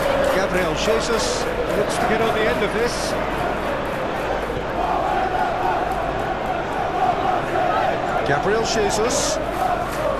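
A large stadium crowd chants and sings steadily.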